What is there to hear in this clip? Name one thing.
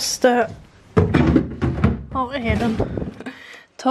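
A freezer drawer slides open.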